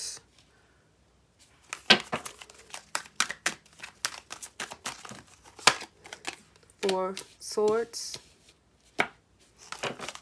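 A card is slapped down softly onto a table.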